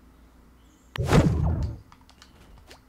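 A character lands with a thud on a rooftop.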